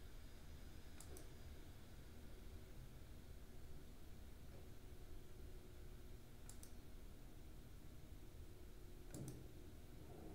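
Buttons click softly under a thumb.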